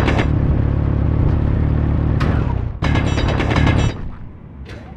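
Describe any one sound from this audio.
A hand drill grinds loudly into rock.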